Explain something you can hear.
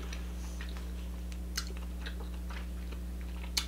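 Crab shells crack in a young woman's hands.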